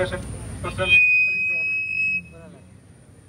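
A loudspeaker gives a brief high-pitched feedback squeal.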